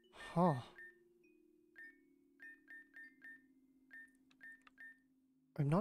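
Short electronic menu blips sound as a selection moves.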